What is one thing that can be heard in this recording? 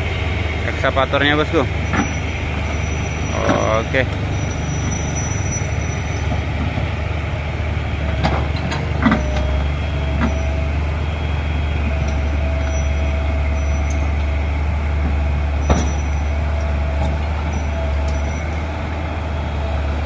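A diesel excavator engine rumbles steadily close by.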